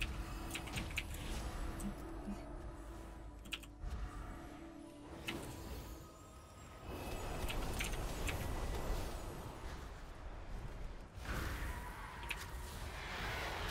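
Magic spells zap and chime in quick bursts.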